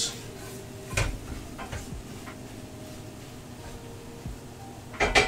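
Kitchen utensils knock and clatter now and then.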